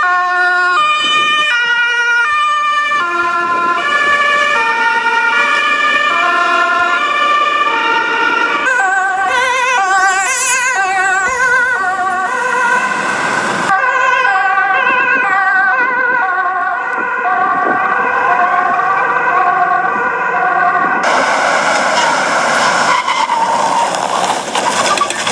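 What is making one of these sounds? An ambulance siren blares in loud alternating tones.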